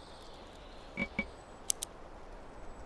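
Short interface clicks sound as a game menu is operated.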